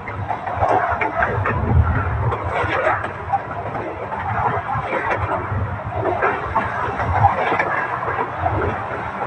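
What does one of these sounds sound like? A rope rubs and creaks as it is hauled in.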